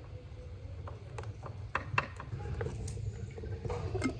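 Oil pours and splashes into a metal pan.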